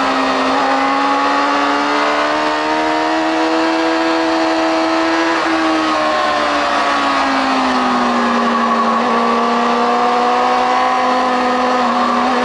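A motorcycle engine roars loudly close by, its pitch rising and falling through the gears.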